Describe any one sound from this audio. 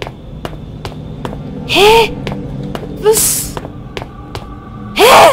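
Footsteps tap steadily on a hard tiled floor.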